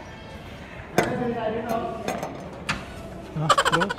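A glass door clunks as it is pushed open.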